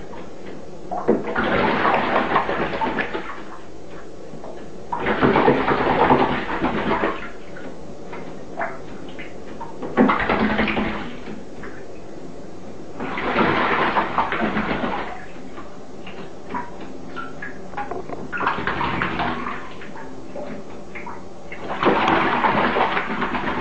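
A bird splashes and flaps its wings in shallow water, in repeated bursts.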